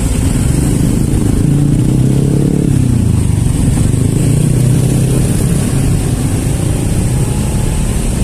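Motorcycle engines idle and rumble close by in slow traffic.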